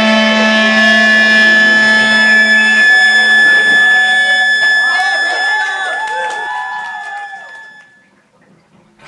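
A live band plays loudly, with ringing guitar chords that fade away.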